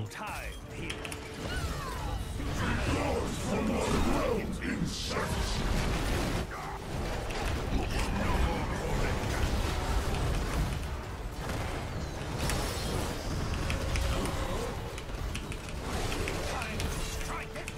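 Video game battle sounds clash and crackle.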